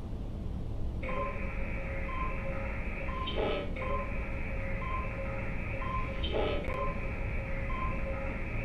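A computer terminal hums with a steady electronic scanning tone.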